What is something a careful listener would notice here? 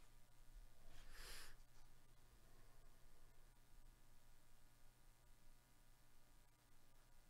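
Gloved fingers rub and slide against a stack of trading cards.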